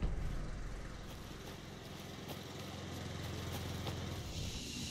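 Footsteps crunch slowly on a dirt path outdoors.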